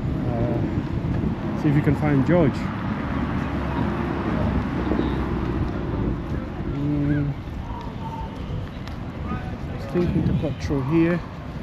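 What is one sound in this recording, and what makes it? Footsteps tap on paving.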